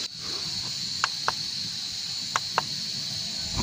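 A gloved finger taps sharply on a hard plastic dish.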